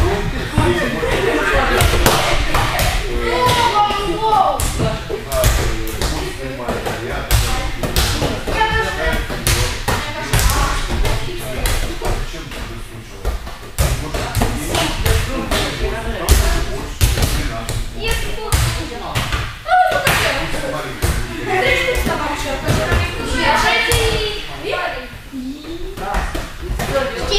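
A ball thumps on hands and the floor again and again.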